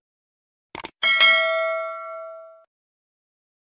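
A small bell chimes brightly and fades.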